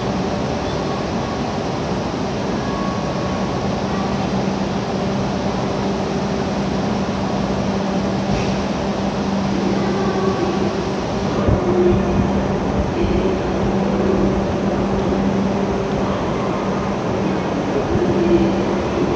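A train's engine hums steadily.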